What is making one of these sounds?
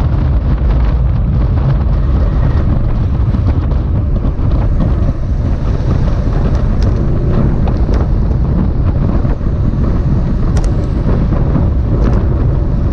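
Wind rushes loudly past, as if heard outdoors while moving at speed.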